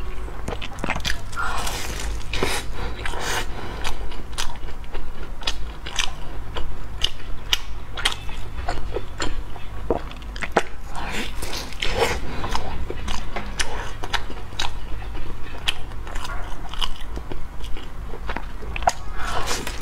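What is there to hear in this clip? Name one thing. A young woman bites into crusty bread with a crackle.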